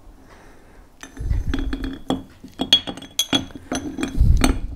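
Metal parts clink and scrape against each other close by.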